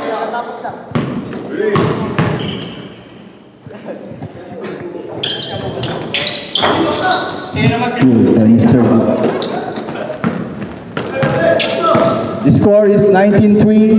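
A basketball bounces on a hard floor in an echoing gym.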